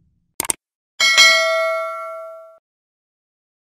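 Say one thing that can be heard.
A small bell chimes and rings out.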